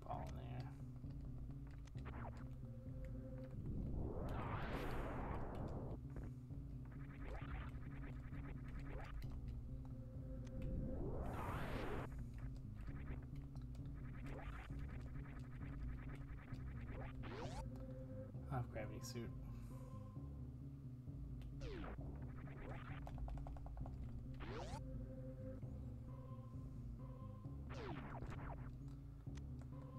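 Retro video game music plays steadily with low synth notes.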